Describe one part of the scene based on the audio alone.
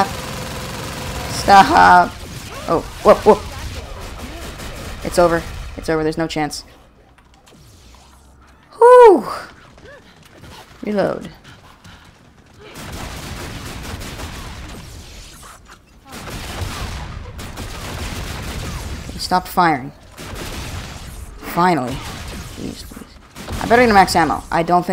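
Gunfire rattles in a game.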